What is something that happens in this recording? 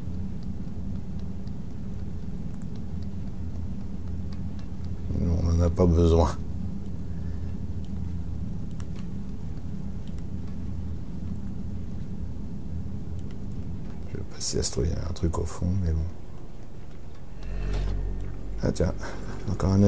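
Small footsteps patter softly on a hard floor.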